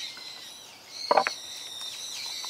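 A heavy wooden mortar thuds onto a wooden board.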